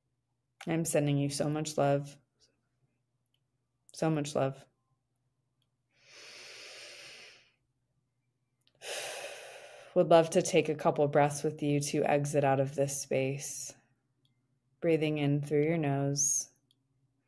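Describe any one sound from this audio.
A young woman speaks calmly and softly, close to a microphone, with pauses.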